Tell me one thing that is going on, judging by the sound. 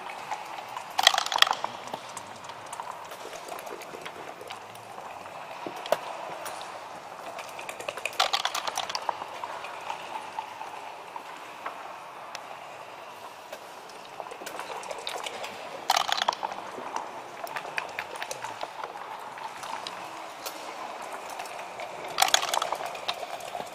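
Dice rattle and tumble onto a board.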